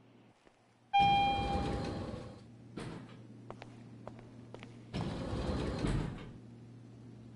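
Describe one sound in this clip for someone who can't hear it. Elevator doors slide open with a whoosh.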